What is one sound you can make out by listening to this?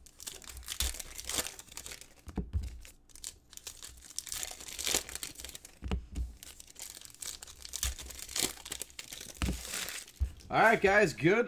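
Foil wrappers crinkle and tear as hands open packs.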